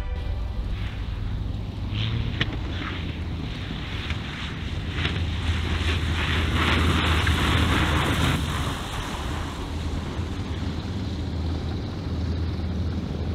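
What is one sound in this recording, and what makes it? A small propeller plane's engine drones loudly as it rolls past, swelling as it nears and easing as it moves away.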